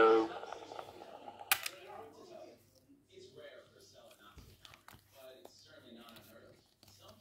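Gloved fingers rub and tap against a leather case.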